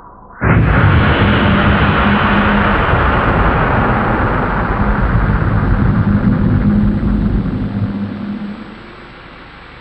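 A huge explosion booms and roars with a deep rumble, then slowly fades.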